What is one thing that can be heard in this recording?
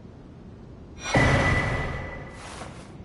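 A bright chime rings out with a whoosh, then fades.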